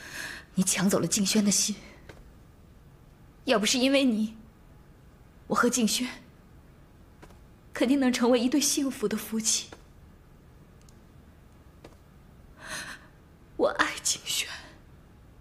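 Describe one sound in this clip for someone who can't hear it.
A young woman speaks accusingly and with emotion, close by.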